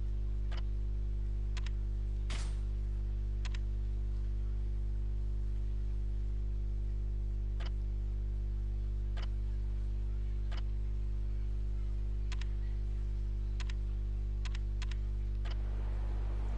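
Game menu clicks sound sharply several times.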